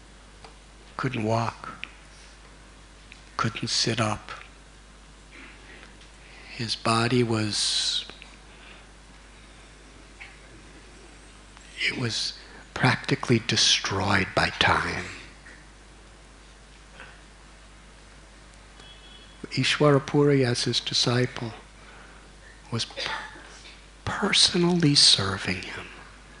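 An older man speaks calmly into a microphone, with pauses between phrases.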